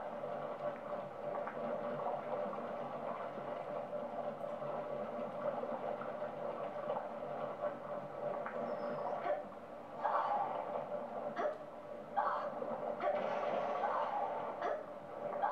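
Video game music plays steadily through a television speaker.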